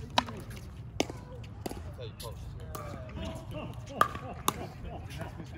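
Paddles hit a plastic ball with sharp hollow pops, outdoors.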